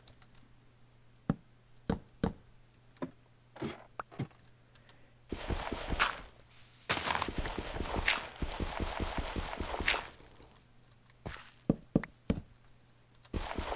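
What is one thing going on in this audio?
Wooden ladder rungs clack as they are placed.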